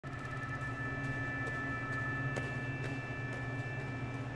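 Footsteps tap on hard stairs.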